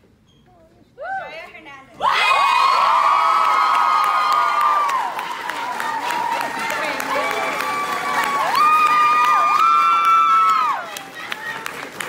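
A crowd of young people cheers and screams loudly.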